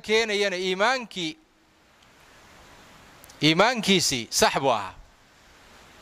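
An elderly man speaks with animation into a close microphone.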